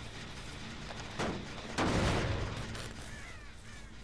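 A metal engine clanks and grinds as it is struck.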